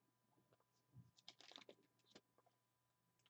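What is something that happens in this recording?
A card slides softly against a plastic sleeve in someone's hands.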